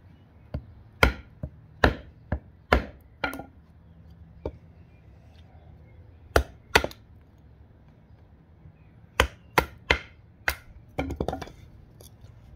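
A knife blade chops into wood with sharp, repeated knocks.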